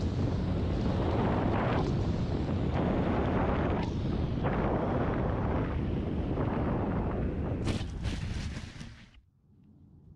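A small drone's propellers buzz loudly in flight, then wind down and stop.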